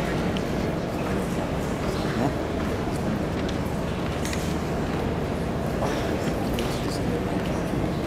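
A school concert band plays in a large echoing hall.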